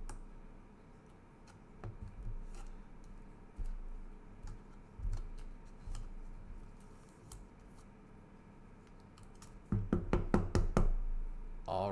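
A card slides with a soft scrape into a stiff plastic sleeve.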